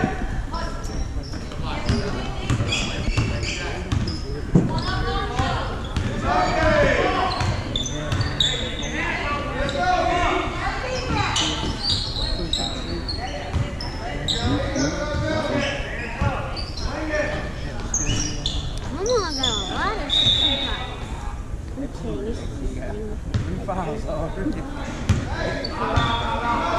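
A basketball bounces on a wooden court in a large echoing gym.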